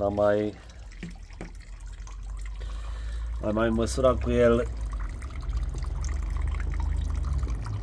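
Water trickles from a tap and splashes into a half-full bucket.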